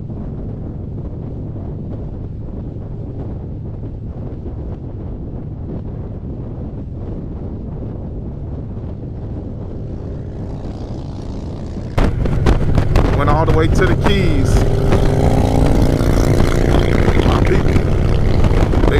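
A motorcycle engine drones steadily at speed.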